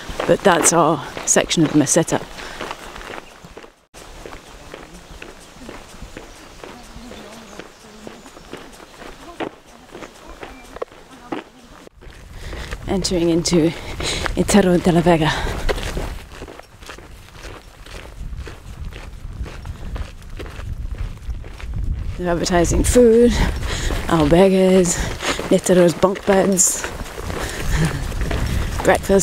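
Footsteps crunch on gravel close by.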